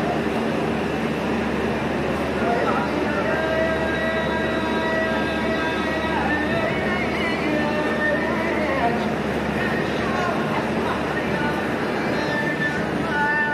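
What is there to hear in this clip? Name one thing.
A large crowd murmurs and chants nearby.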